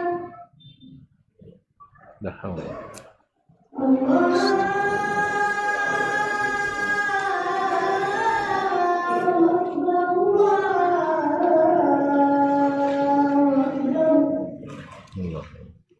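A man recites in a drawn-out, chanting voice through a microphone.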